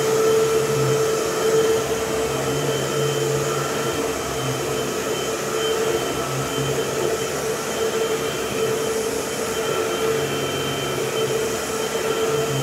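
A vacuum cleaner motor whines steadily.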